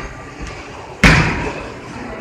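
A bowling ball thuds onto a lane.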